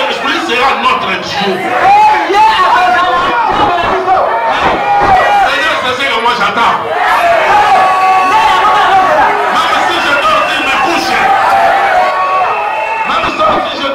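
A large crowd sings loudly together in an echoing hall.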